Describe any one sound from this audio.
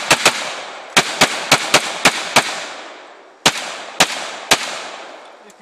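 A pistol fires rapid shots outdoors, each ringing out with a long echo.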